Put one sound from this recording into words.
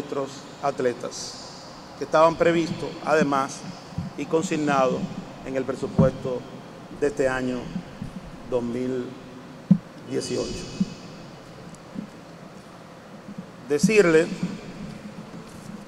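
A middle-aged man speaks calmly into a microphone in a large echoing hall.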